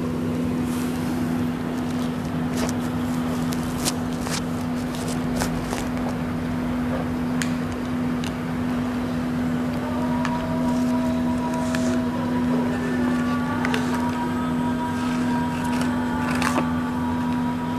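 Light clicks and taps come from small objects being handled close by.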